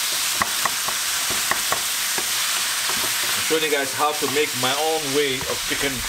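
A wooden spatula scrapes and knocks against a pan.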